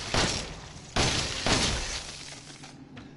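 A gun fires loudly.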